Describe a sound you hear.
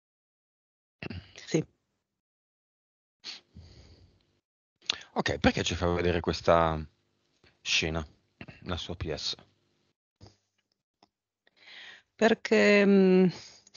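A man speaks with animation through a headset microphone.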